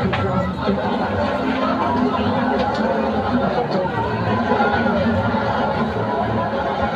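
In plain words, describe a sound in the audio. A large crowd chatters and cheers loudly outdoors.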